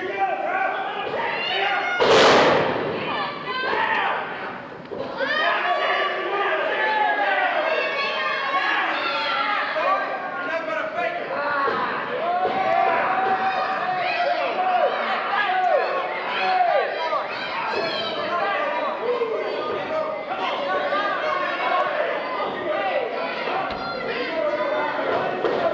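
A crowd of men and women cheers and chants loudly in a large echoing hall.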